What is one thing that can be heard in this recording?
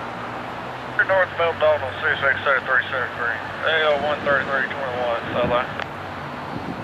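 A train horn blasts loudly in several long and short blows.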